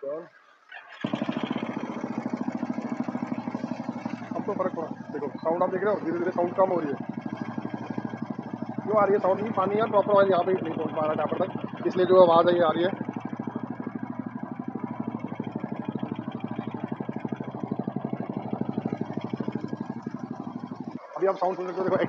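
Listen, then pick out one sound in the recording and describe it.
A motorcycle engine idles with a steady, throbbing rumble.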